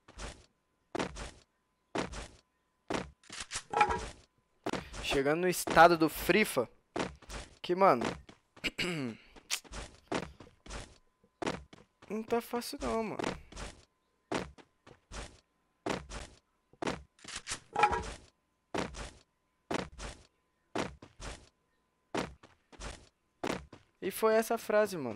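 Footsteps thud quickly and evenly on grass and ground.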